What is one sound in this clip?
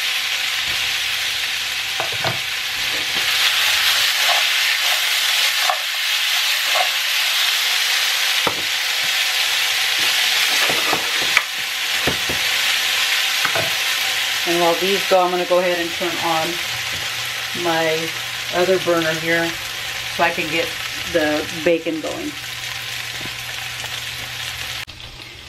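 Potatoes sizzle steadily in a frying pan.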